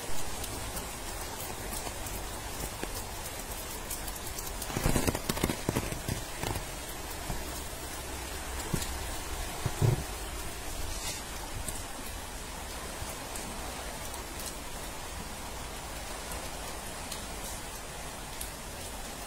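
Flood water flows and rushes.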